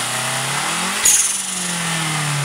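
A turbo valve releases air with a short, sharp hiss.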